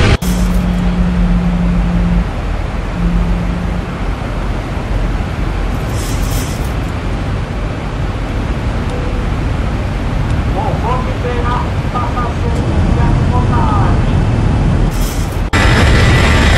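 A jet engine hums steadily, heard from inside.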